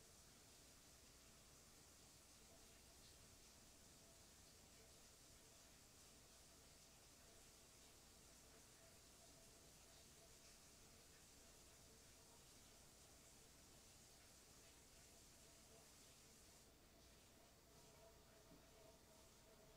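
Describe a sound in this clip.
Waves wash and splash against a boat's hull.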